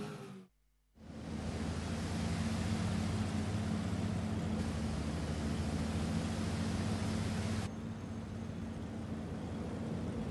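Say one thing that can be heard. A boat motor rumbles steadily.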